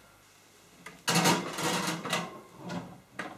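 A baking tray slides into an oven.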